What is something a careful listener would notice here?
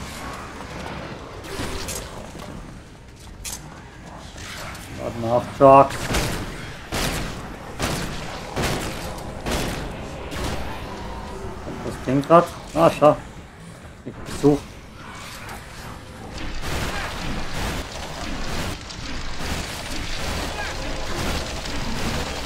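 Blades clash and strike in quick, sharp hits.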